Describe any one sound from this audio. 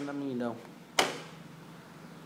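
A circuit board knocks against a hard surface as it is put down.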